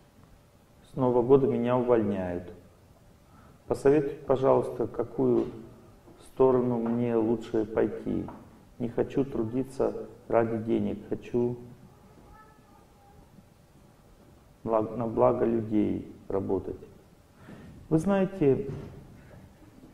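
A middle-aged man speaks calmly into a microphone, with pauses between phrases.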